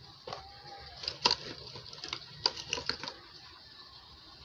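An ornament is hung on an artificial tree's plastic branches, rustling and clicking.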